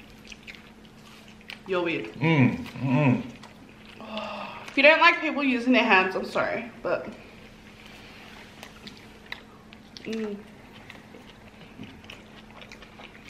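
People chew and smack food noisily close to a microphone.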